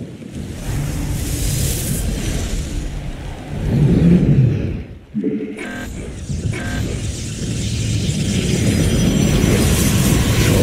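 Game battle sounds rumble and clash.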